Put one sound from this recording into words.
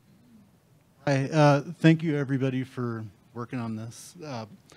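A middle-aged man speaks calmly into a handheld microphone.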